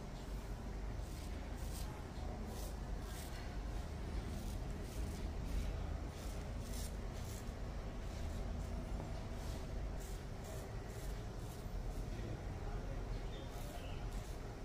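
A straight razor scrapes over stubble in short, rasping strokes.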